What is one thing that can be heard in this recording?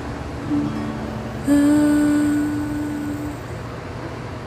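An acoustic guitar plays a few plucked notes that ring and slowly fade.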